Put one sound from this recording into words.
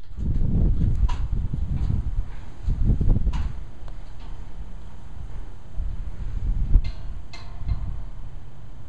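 Stone scrapes against stone in short rasps.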